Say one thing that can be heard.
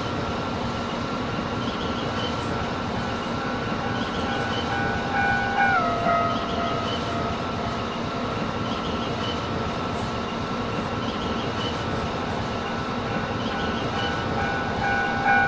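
Train wheels rumble and clack along the rails.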